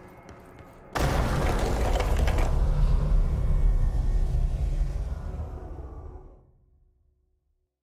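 A deep rushing roar swells suddenly, then slowly fades away.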